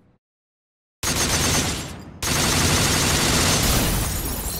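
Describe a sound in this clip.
Rapid gunshots fire in a loud burst.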